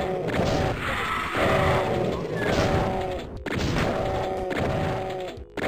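A pistol fires shot after shot.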